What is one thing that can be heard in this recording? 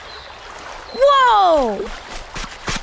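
A small cartoon creature cries out in a high, rising and falling voice.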